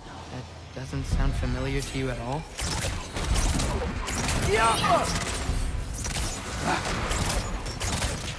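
Arrows whoosh and strike with icy bursts.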